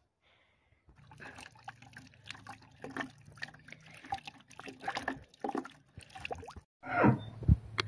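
Water splashes as a fruit is rinsed in a bucket.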